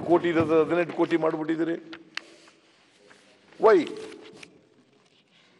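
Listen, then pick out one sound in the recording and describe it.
An elderly man speaks firmly into a microphone in a large hall.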